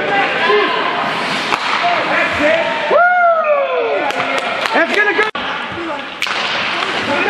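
A hockey stick slaps a puck with a sharp crack.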